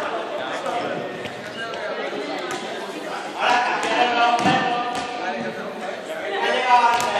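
Many young people talk and shout at once in a large echoing hall.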